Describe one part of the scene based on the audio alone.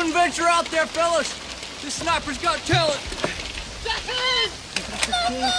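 A young man shouts urgently close by.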